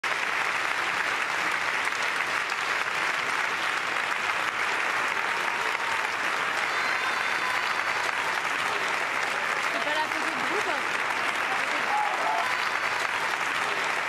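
A large crowd claps and applauds steadily outdoors.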